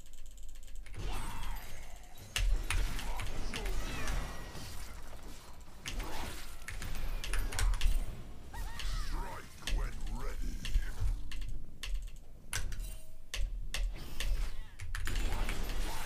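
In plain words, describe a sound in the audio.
Magical blasts and hits clash in a video game fight.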